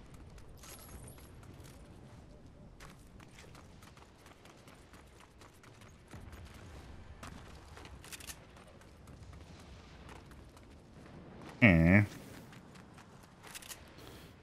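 Footsteps patter quickly on grass and pavement.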